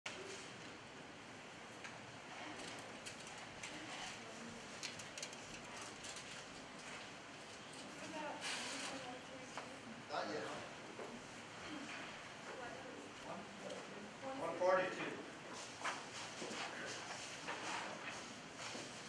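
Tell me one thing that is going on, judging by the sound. A woman speaks calmly to a group, a little way off.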